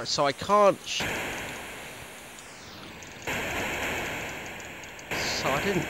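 Electronic explosion-like hiss bursts loudly and slowly fades.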